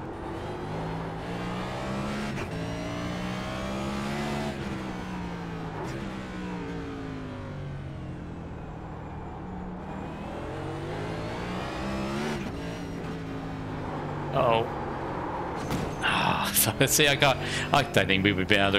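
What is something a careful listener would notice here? A race car engine roars, rising and falling in pitch as the car shifts gears and brakes for corners.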